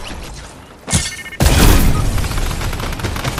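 A loud electric blast crackles and booms.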